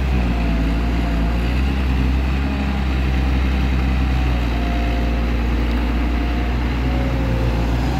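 A diesel engine on a tracked excavator runs with a deep rumble.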